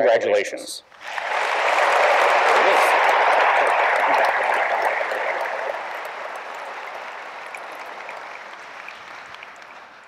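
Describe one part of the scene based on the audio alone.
A crowd applauds loudly and slowly dies down.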